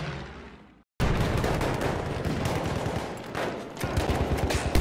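A light machine gun fires in rapid bursts.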